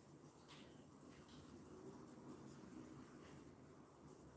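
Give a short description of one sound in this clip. A small tool scrapes lightly across a smooth surface.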